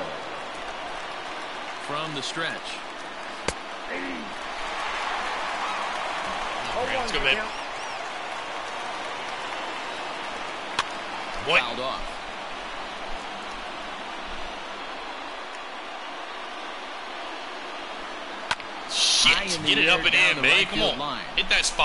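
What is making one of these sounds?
A stadium crowd murmurs steadily.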